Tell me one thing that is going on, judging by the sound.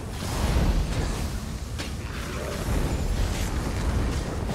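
Flames roar.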